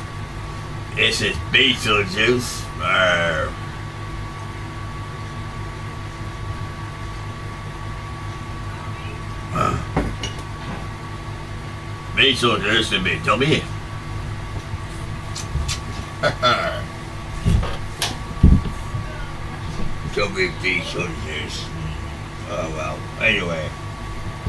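A man speaks in short animated bursts, close by.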